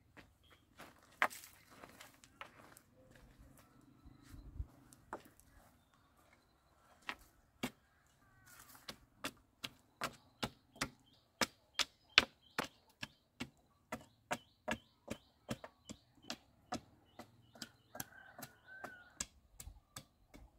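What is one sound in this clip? A wooden pole thuds repeatedly into packed dirt, tamping it down.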